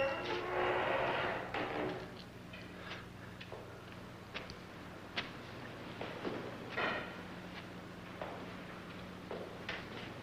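A woman's footsteps tap across a hard floor.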